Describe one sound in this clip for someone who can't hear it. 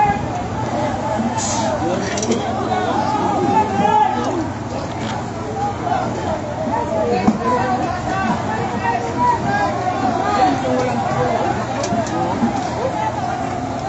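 A crowd of men and women shout and talk excitedly nearby.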